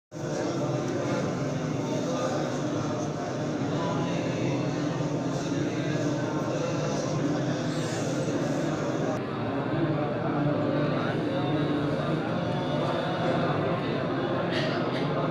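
Many men recite together in a low murmuring chorus, close by.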